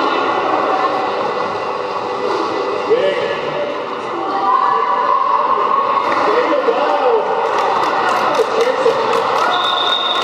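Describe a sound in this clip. Roller skate wheels rumble across a wooden floor.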